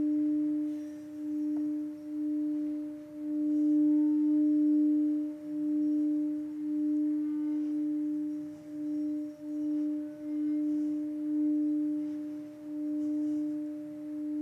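A singing bowl rings with a steady, gently pulsing hum.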